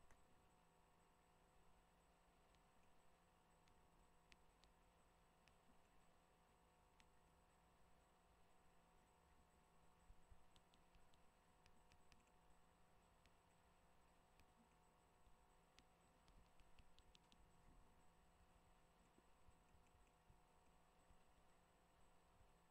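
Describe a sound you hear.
A young man speaks quietly and close to a microphone.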